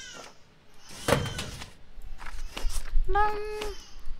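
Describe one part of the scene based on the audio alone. A rubber stamp thuds onto paper.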